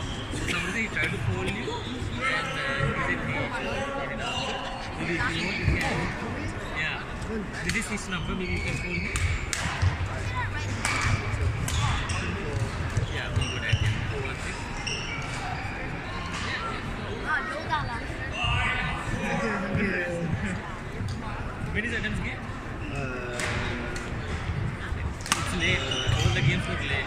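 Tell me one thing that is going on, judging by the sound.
Voices chatter in a large echoing hall.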